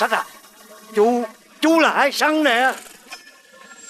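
An elderly man wails loudly in distress, close by.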